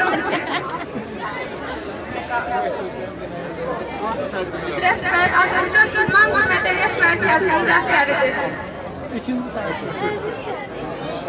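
A large crowd chatters and shouts outdoors.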